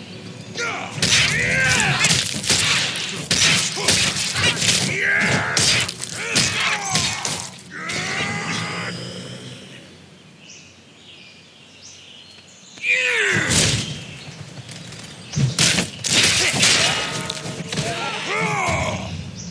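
Metal blades clash and strike in a fast fight.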